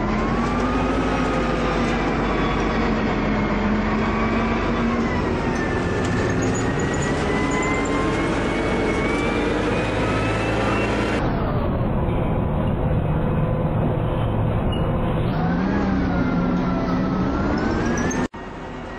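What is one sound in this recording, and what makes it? A city bus diesel engine pulls under load, its pitch rising and falling as it shifts gear.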